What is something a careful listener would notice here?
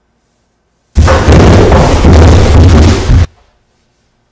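A body tumbles down wooden stairs with loud thuds and crashes.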